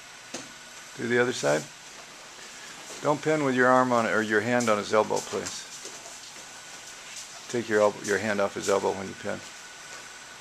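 An older man speaks calmly, explaining.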